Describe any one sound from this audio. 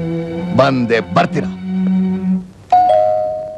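A middle-aged man speaks loudly and angrily, close by.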